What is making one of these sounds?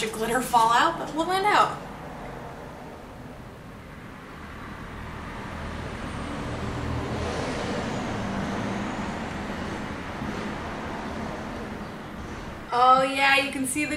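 A young woman talks calmly, close to the microphone.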